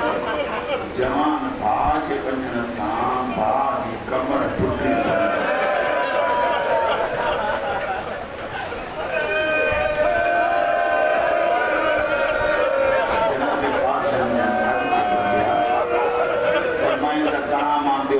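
A man chants a mournful recitation into a microphone, heard through loudspeakers.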